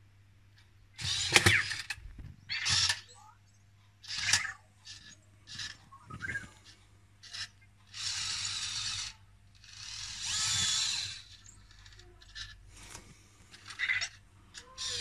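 A small toy robot whirs as its treads roll across a hard surface.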